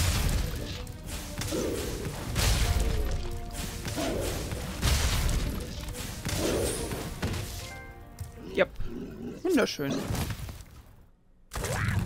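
Heavy footsteps thud and rumble.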